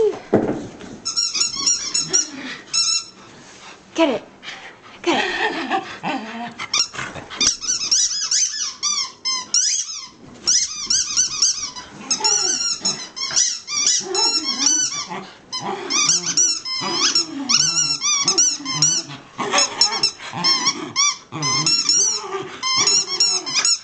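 A rubber toy squeaks over and over.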